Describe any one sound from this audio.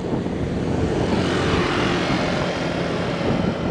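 A scooter passes close by.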